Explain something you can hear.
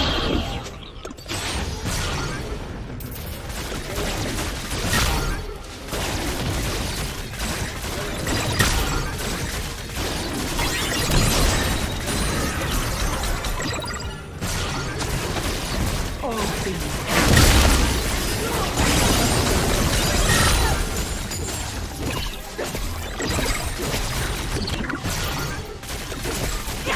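Game spell effects whoosh and clash in quick bursts.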